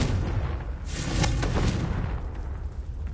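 A small fire bursts up with a roar.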